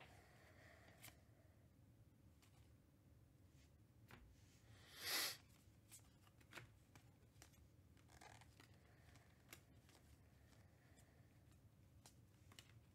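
Trading cards flick and rustle softly as they are shuffled through by hand.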